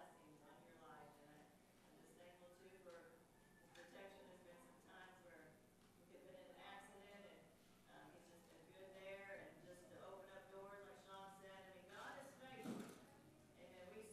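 An older man speaks steadily and earnestly through a microphone in a reverberant room.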